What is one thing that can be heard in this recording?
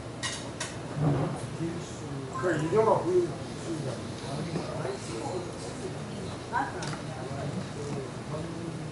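A man talks into a microphone over loudspeakers.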